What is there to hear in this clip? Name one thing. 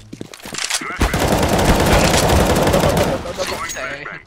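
Rapid rifle gunfire rattles.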